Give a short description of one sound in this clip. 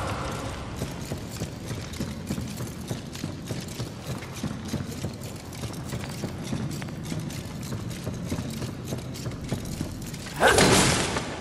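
Quick footsteps thud on wooden planks.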